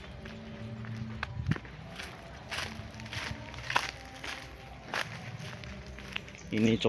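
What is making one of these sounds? Footsteps crunch on dry leaves and twigs outdoors.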